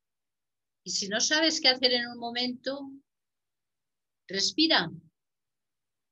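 A middle-aged woman speaks calmly and close to a microphone, in short phrases with pauses.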